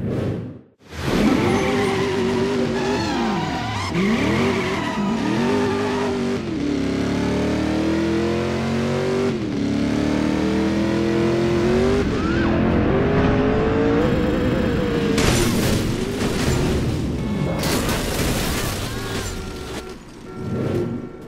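A sports car engine roars and revs up and down through gear changes.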